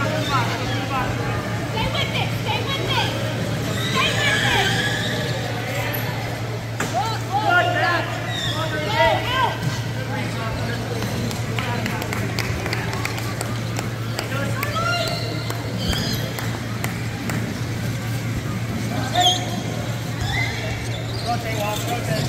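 People talk and call out in the background of a large echoing hall.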